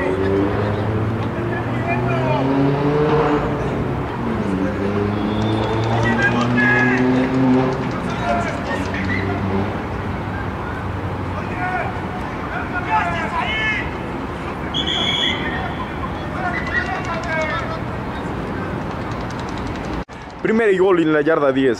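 Young players and coaches talk and call out nearby outdoors.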